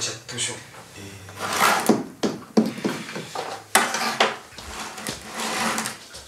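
A plastic bag rustles as a young man opens a box.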